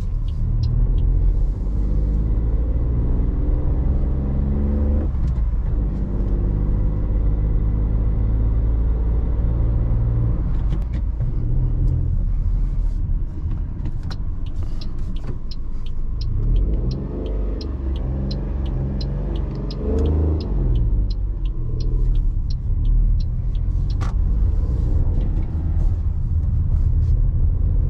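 A small car engine hums steadily and rises in pitch as the car speeds up.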